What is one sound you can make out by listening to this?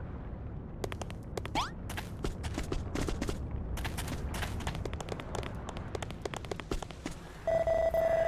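Quick footsteps patter as game characters run.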